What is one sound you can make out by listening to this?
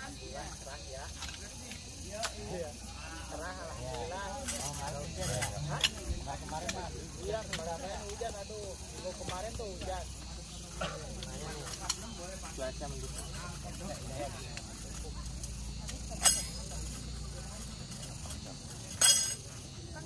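Tent pegs clink and knock as they are handled.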